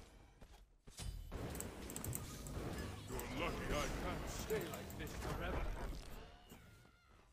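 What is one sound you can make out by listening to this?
Video game battle effects clash and crackle loudly.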